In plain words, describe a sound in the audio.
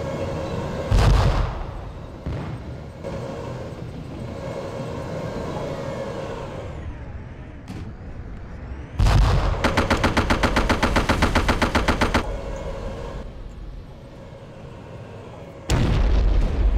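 A tank cannon fires with a loud, deep boom.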